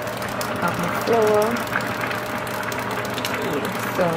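Flour pours softly into a metal pan.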